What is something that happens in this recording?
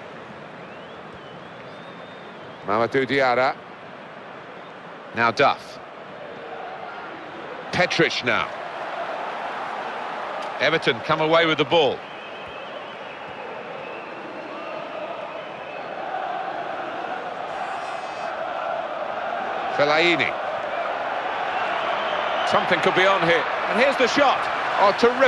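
A large stadium crowd murmurs steadily and slowly swells louder.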